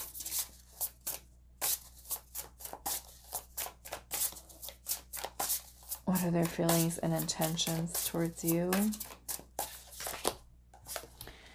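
Playing cards riffle and flick quickly as a deck is shuffled.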